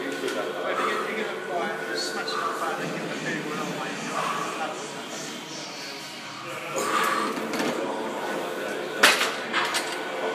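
A man breathes hard with effort, close by.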